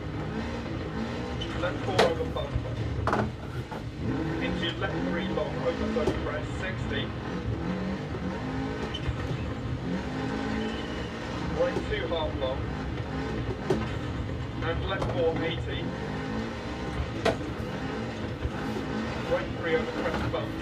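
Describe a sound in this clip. A rally car engine revs and roars through loudspeakers.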